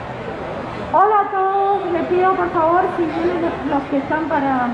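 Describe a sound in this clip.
A woman sings loudly nearby.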